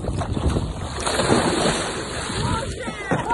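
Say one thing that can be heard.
A person jumps feet first into water with a loud splash.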